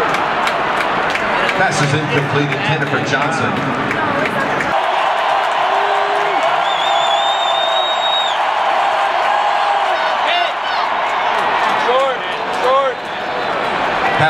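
A large stadium crowd roars and cheers throughout.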